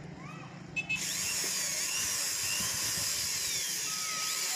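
A cordless drill whirs as it drives a screw.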